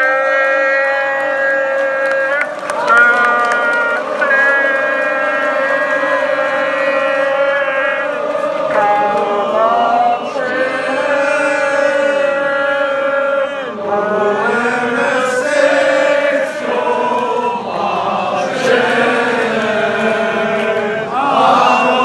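A football crowd sings a chant in unison.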